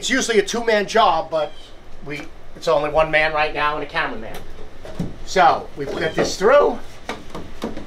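A man talks calmly and clearly close by.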